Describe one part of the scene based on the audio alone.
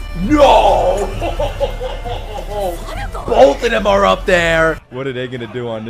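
A young man shouts and screams excitedly into a close microphone.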